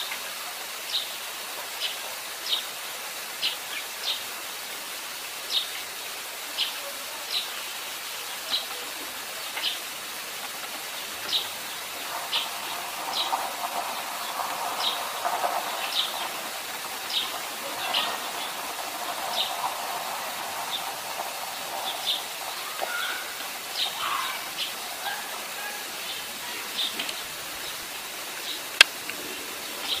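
A sparrow chirps repeatedly in short, sharp notes close by.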